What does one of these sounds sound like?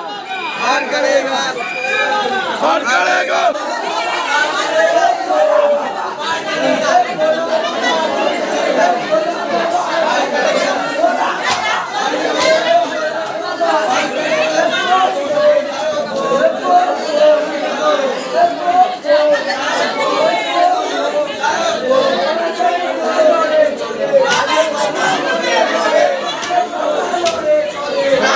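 A crowd of men and women chatter and call out loudly close by.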